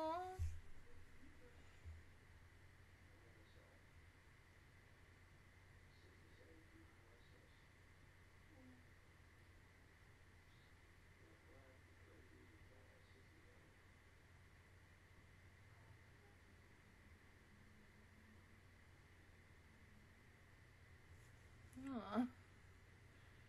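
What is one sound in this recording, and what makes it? A young woman speaks briefly, close to a microphone.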